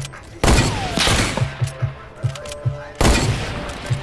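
A shotgun fires with loud, booming blasts.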